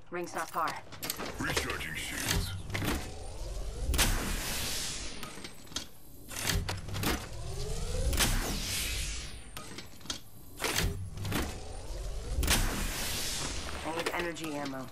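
A device charges with a swelling electric whoosh and crackle.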